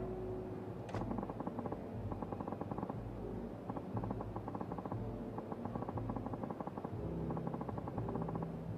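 Rapid soft electronic blips tick in quick bursts.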